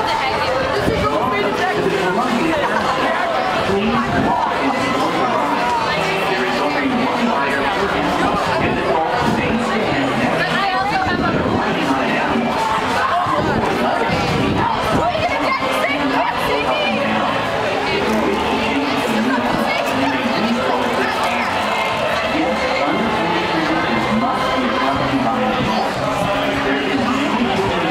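Cheerful carousel organ music plays loudly and steadily.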